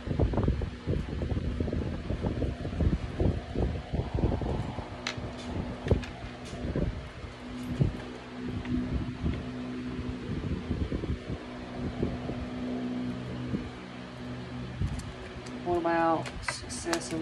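Playing cards are shuffled and flicked by hand.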